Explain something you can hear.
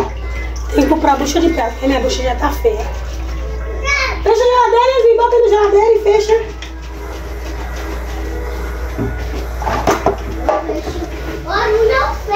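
Dishes clink in a metal basin.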